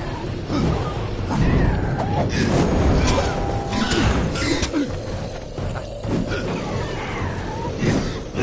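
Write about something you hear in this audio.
Fiery magic blasts whoosh and crackle.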